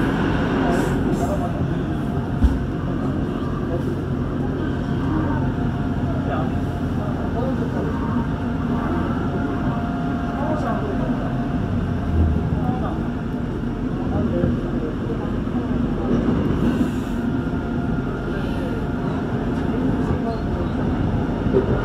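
An electric commuter train rumbles along the rails in the open, heard from inside a carriage.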